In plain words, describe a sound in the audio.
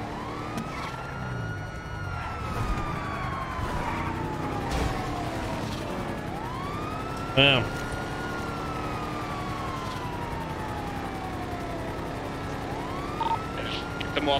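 A car engine revs high, climbing and dropping again and again as the car speeds along.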